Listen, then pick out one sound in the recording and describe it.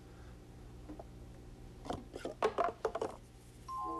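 A tower of paper cups topples onto a table.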